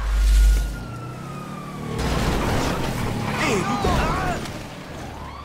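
A motorbike engine revs.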